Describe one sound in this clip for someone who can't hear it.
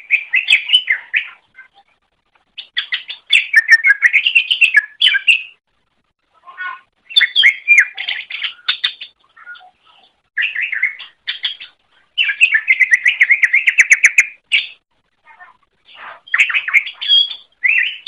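A small songbird sings in bursts of quick, warbling and chirping notes.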